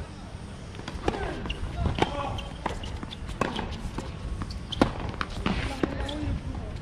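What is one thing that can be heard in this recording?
A tennis ball is struck with a racket several times, with sharp pops outdoors.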